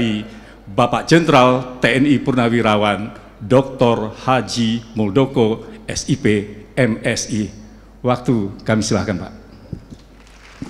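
An older man speaks calmly into a microphone in a large hall.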